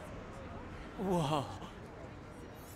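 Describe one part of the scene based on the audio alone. A young man answers with a short sound.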